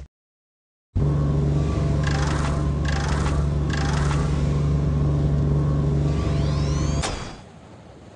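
An engine hums steadily and loudly.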